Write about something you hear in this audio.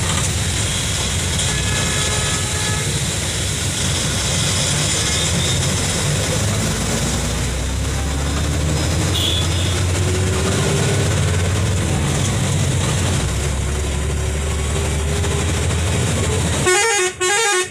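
Wind rushes past the moving vehicle.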